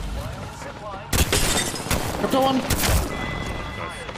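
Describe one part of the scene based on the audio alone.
Rapid gunshots ring out in bursts.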